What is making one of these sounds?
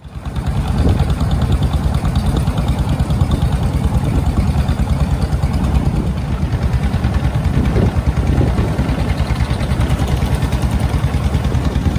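A boat's motor chugs loudly and steadily close by.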